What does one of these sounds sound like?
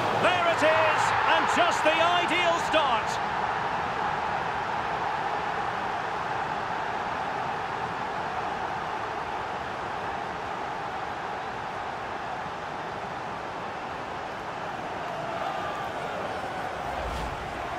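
A stadium crowd cheers loudly after a goal.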